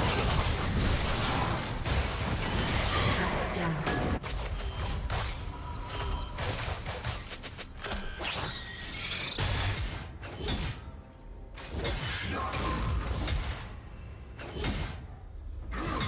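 Sword and weapon hits clang in a video game fight.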